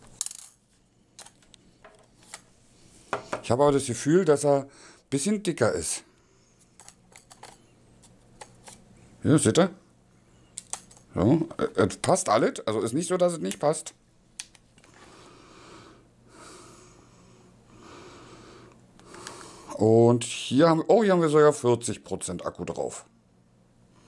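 Small plastic parts click as a man handles a device.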